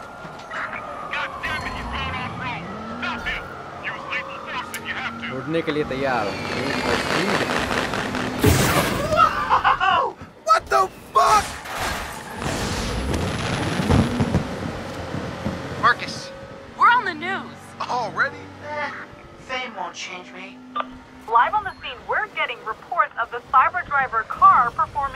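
A car engine revs and roars as the car speeds along.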